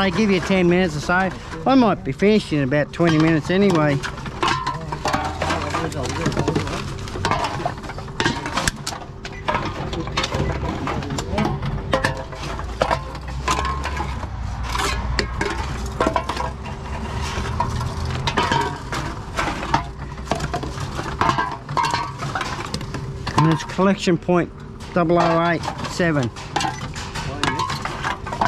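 A machine whirs as it takes in cans.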